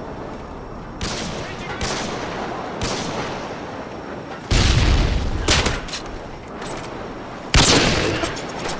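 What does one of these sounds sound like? Pistol shots crack loudly, one at a time, with echoes.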